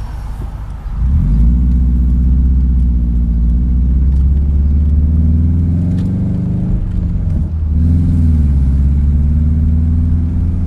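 Tyres roll on pavement.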